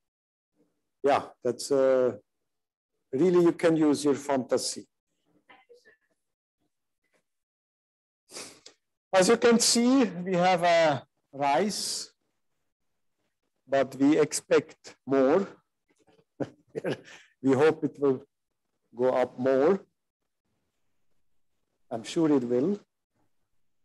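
A man talks calmly, heard through an online call, with pauses between phrases.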